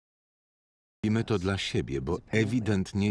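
A woman speaks with emotion.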